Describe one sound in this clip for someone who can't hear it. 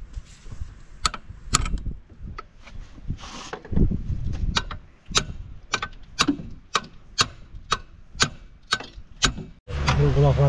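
A ratchet wrench clicks rapidly as a bolt is turned.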